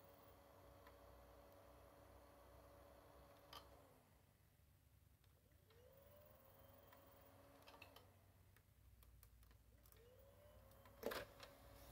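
A small motor whirs steadily, winding down and spinning up again.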